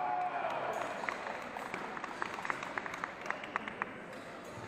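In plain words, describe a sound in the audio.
Blades clack and clatter as fencers spar.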